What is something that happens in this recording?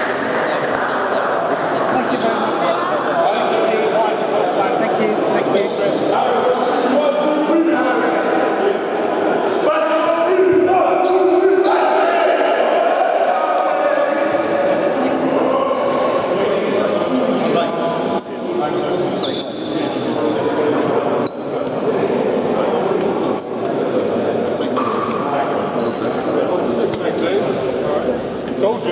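A crowd of young men talk and shout at once in a large echoing hall.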